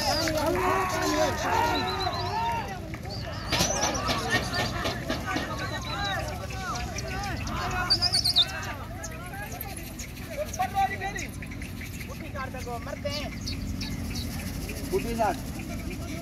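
Pigeon wings flap and clatter as a flock takes off.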